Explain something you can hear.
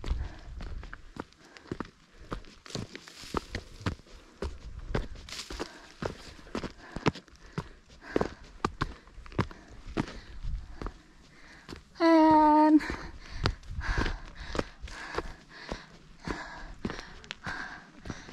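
Boots crunch on loose stones and gravel at a steady walking pace.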